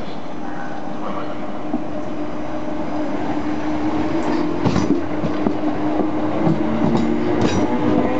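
Train brakes squeal steadily.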